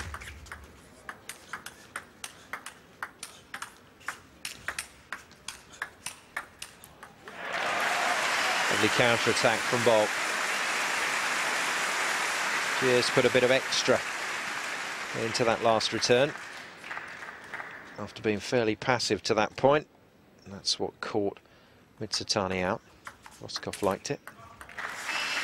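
A table tennis ball clicks rapidly back and forth off paddles and a table.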